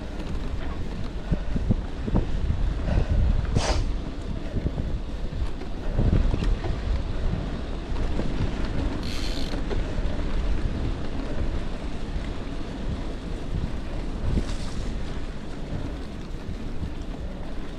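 Bicycle tyres crunch and rumble over a rough dirt track.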